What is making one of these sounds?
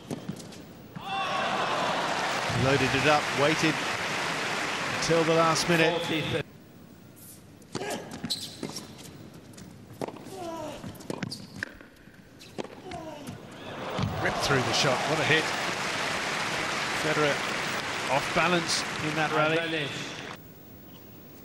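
A crowd applauds loudly in an echoing hall.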